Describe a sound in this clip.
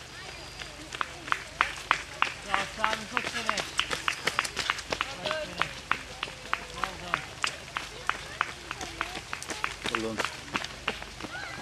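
Running footsteps slap on a wet road, passing close by.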